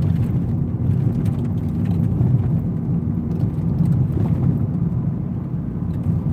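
A car engine rumbles low and steady from inside the moving car.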